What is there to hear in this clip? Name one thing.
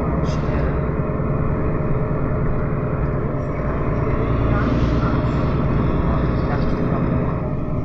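A vehicle's engine rumbles steadily from inside as it drives along.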